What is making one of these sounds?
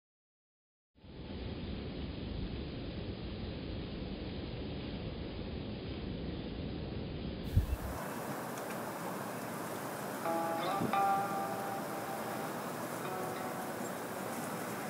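Wind blows hard outdoors, rumbling against the microphone.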